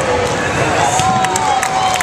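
A volleyball thumps off a player's arms.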